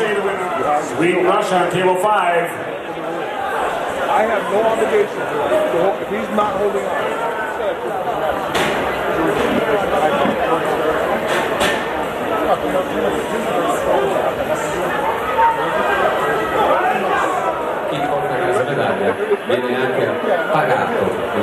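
A man referee calls out commands.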